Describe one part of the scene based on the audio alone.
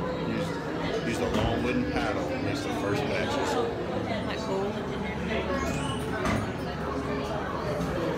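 A crowd of people chatters nearby in an echoing room.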